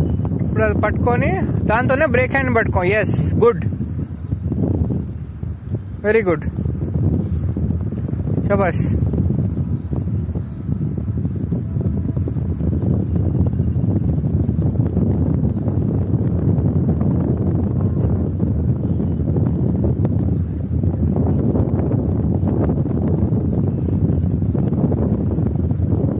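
Wind blows steadily outdoors, rumbling across the microphone.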